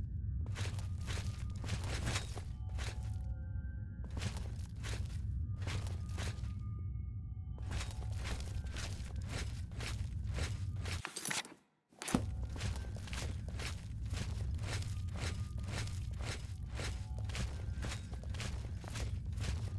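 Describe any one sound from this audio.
Footsteps fall steadily on a stone floor in an echoing underground space.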